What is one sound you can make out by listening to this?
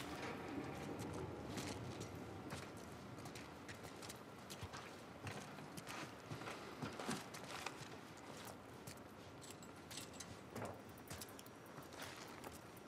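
Footsteps crunch on debris.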